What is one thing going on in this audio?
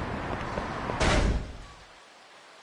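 A soft whoosh plays as a menu opens.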